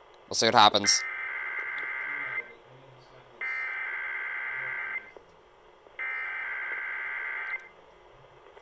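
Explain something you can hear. A radio speaker plays long, steady, buzzing tones with short pauses between them.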